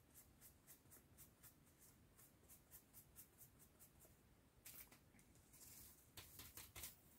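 A sponge dabs rhythmically on a tile with soft scratchy pats.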